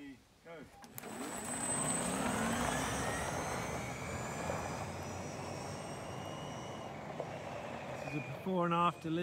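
An electric utility vehicle whirs as it pulls away and drives off into the distance.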